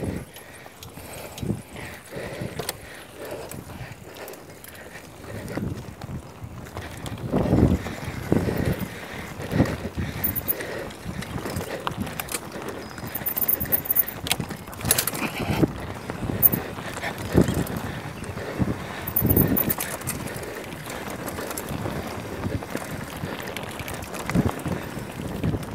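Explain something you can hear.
Bicycle tyres crunch and rattle over a bumpy dirt trail.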